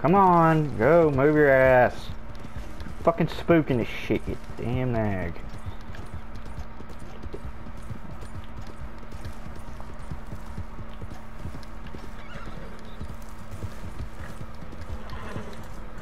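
A horse's hooves thud as it gallops over dry ground.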